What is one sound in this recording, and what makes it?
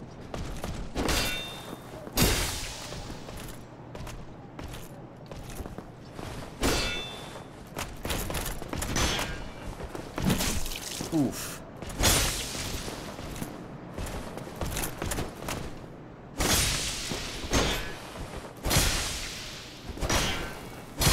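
Heavy metal blows clang against a shield.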